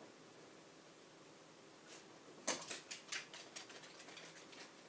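A dog's claws click and patter on a wooden floor.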